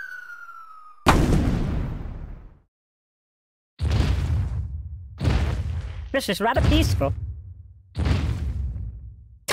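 A heavy stone statue drops and lands with loud thuds.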